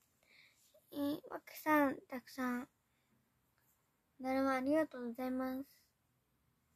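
A young girl speaks close to a microphone in a bright, lively voice.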